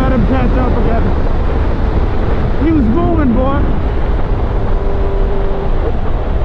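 A motorcycle engine hums and revs as the bike rides along.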